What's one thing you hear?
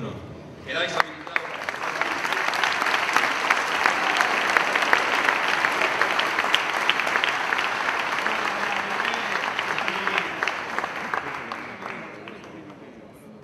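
A crowd claps and cheers loudly in a large echoing hall.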